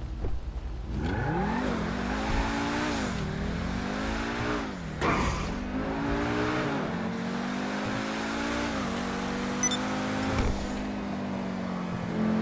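A sports car engine roars as it accelerates hard, rising and dropping in pitch with each gear change.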